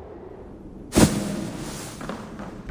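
A body lands with a heavy rustling thump in a pile of hay.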